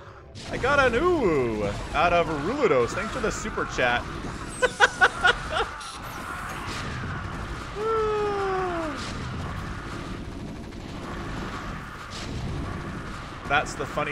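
Rapid gunfire rattles in a game battle.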